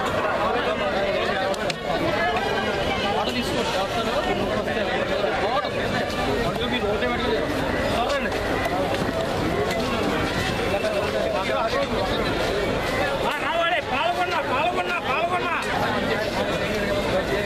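A busy crowd of men and women talks all around at once, outdoors.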